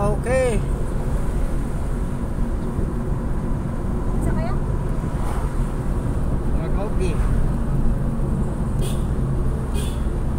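A car engine hums and tyres rumble on the road from inside a moving car.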